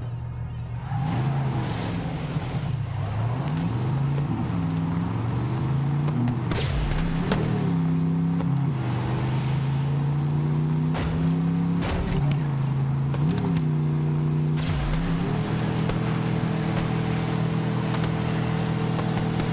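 A vehicle engine roars and revs up and down as it drives.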